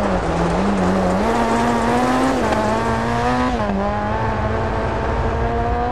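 Tyres skid and scrabble on loose gravel.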